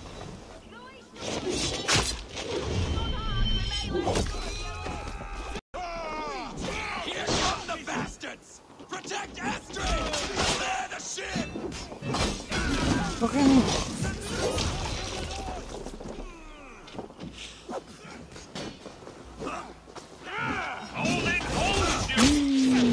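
Metal weapons clash and thud in a fierce fight.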